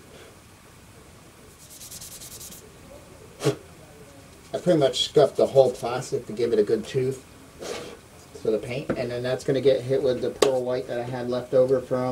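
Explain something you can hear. Plastic parts click and rustle in a man's hands.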